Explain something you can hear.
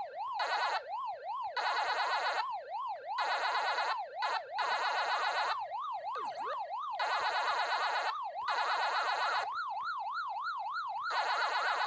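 Electronic chomping blips sound in rapid bursts.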